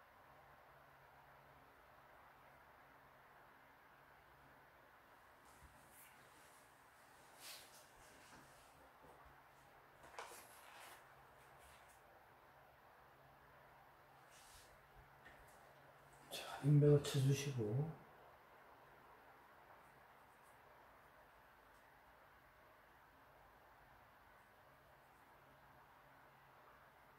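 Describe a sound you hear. A brush softly strokes across paper.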